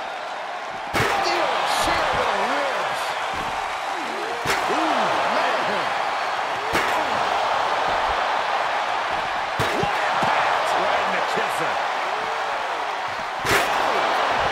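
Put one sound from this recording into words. A metal chair cracks loudly against a body.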